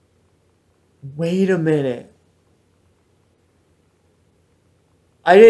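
A young man speaks close to a microphone with a drawn-out, wondering tone.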